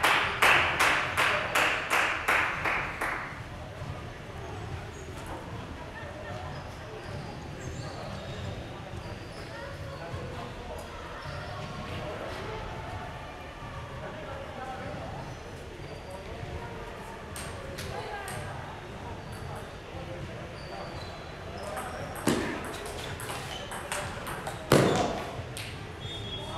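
A table tennis ball clicks rapidly back and forth on paddles and table, echoing in a large hall.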